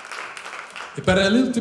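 A man sings into a microphone over a loudspeaker.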